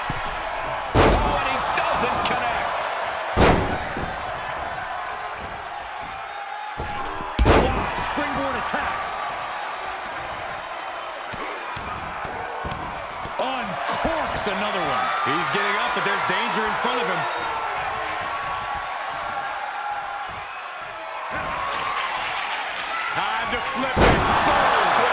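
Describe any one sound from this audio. Heavy bodies slam down onto a wrestling ring mat with loud thuds.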